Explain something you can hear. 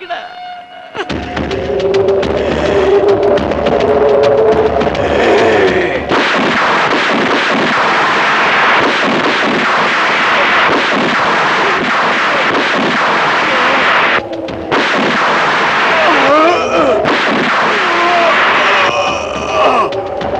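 A man sings loudly.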